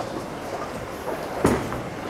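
A bowling ball thuds onto a lane and starts rolling.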